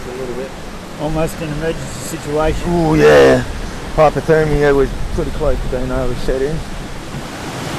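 A man talks close by.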